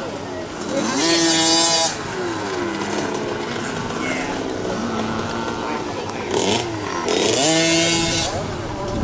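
A small dirt bike engine revs up and down.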